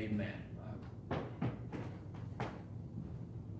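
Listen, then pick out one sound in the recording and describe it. Footsteps walk away across a floor.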